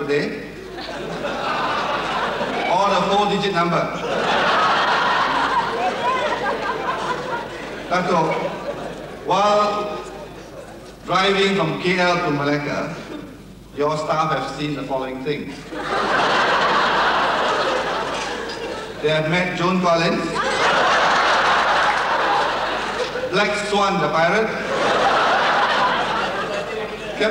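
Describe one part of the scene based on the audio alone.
A middle-aged man speaks through a microphone and loudspeakers.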